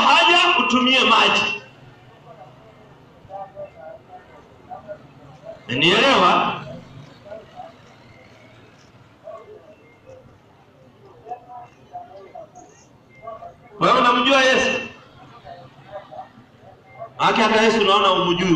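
An elderly man preaches loudly in bursts through a microphone and loudspeaker outdoors.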